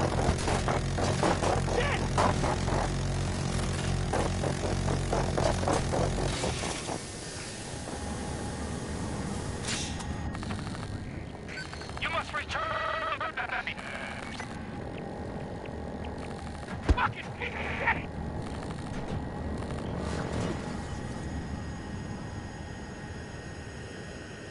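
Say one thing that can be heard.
A helicopter's rotor thumps and its engine drones loudly.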